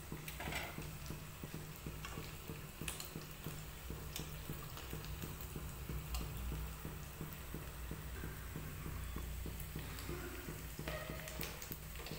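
A metal spoon clinks against a pan.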